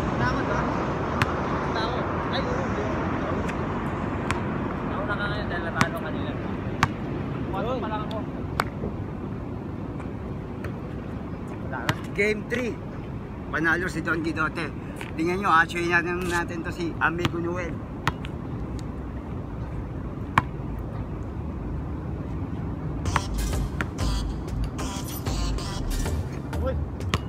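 A basketball bounces on a hard outdoor court.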